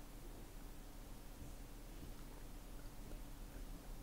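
A young woman drinks from a bottle.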